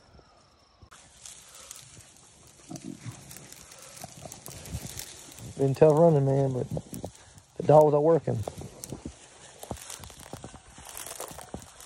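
Brush rustles and crackles as a dog pushes through it.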